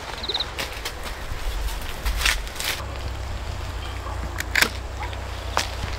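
Pruning shears snip a stem.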